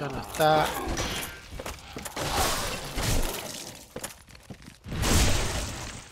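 A sword slashes and strikes flesh.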